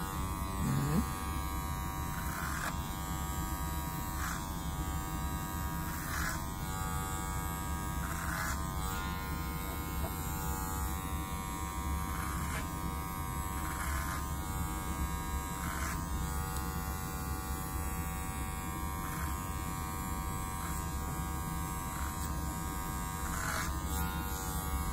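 Electric hair clippers buzz steadily, close by.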